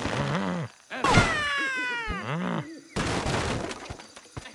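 Wooden blocks crash and splinter.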